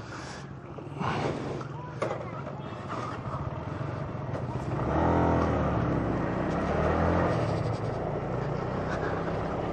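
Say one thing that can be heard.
A motorcycle engine hums and revs as it rides along.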